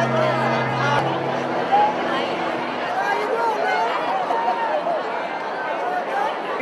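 A crowd of adults chatters and laughs loudly in an echoing hall.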